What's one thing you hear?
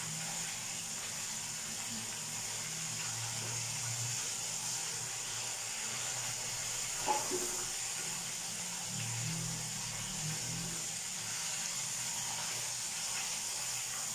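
Metal tongs clink against a metal pot.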